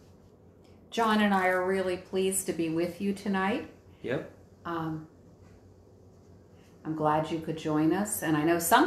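A middle-aged woman speaks calmly, close by.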